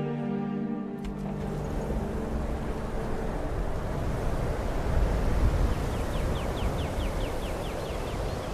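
Wind howls and roars through a snowstorm.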